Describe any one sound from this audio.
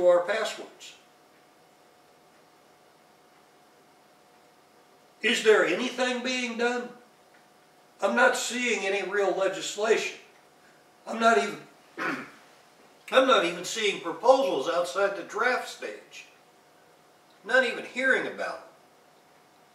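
A middle-aged man speaks calmly close by, in short bursts with pauses.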